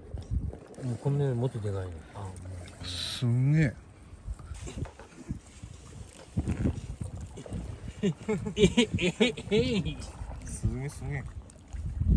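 Small waves splash against rocks nearby.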